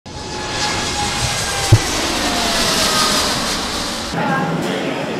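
A jet airliner roars loudly as it takes off.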